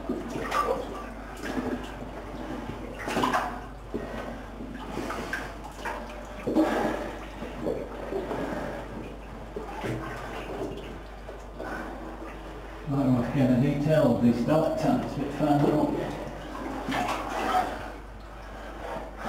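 Stiff waterproof clothing rustles and scrapes against rock as a person crawls.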